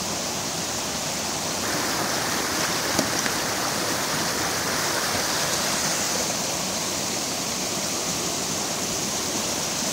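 Water rushes loudly and steadily over rocks close by.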